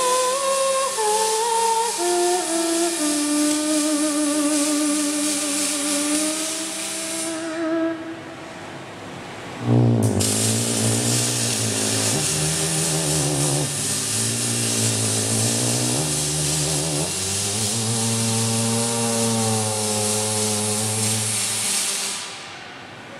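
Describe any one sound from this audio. Electric welding arcs hiss and crackle steadily.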